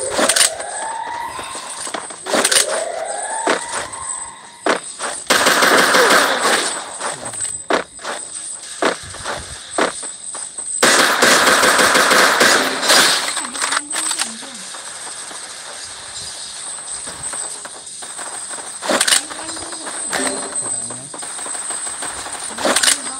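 Gunshots ring out in short, sharp bursts.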